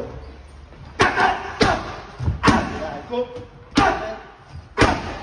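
Kicks and punches thud sharply against a padded shield.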